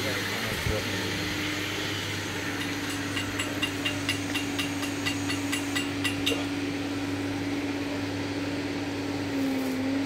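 A machine hums steadily outdoors.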